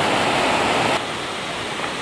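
A fast river roars and rushes loudly.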